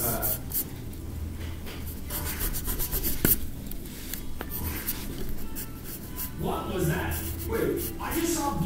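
A pencil scratches across paper in short strokes.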